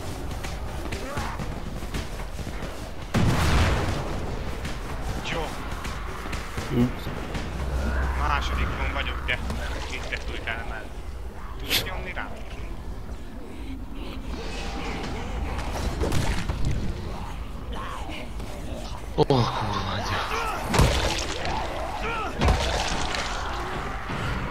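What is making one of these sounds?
Explosions boom one after another.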